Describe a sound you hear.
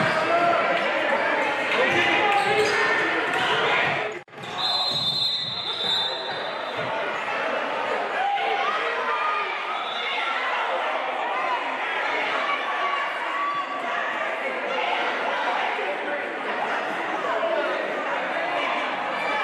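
A crowd of voices chatters and calls out in an echoing gym.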